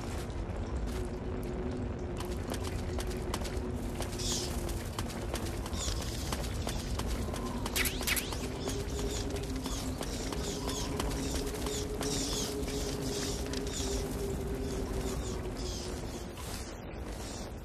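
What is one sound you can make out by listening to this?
Footsteps run over rough ground.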